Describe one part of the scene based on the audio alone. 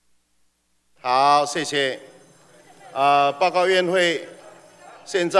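A middle-aged man reads out calmly into a microphone in a large echoing hall.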